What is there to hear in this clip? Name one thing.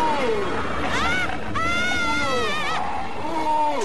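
A young woman screams in terror close by.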